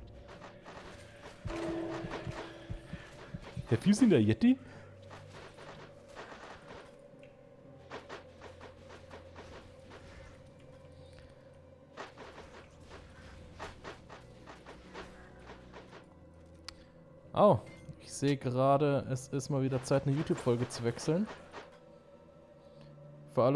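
Game spells whoosh and crackle in short bursts.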